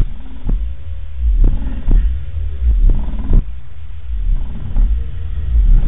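A subwoofer pumps loud, deep booming bass with heavy thumps.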